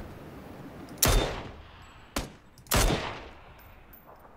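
Rifle shots crack loudly and echo.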